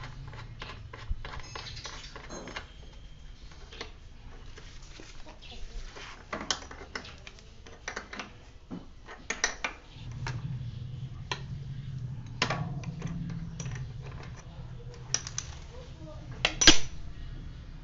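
Metal tools click and clank against a bicycle crank.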